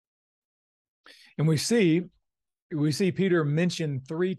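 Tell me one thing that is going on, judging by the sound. A man speaks close-up through an online call.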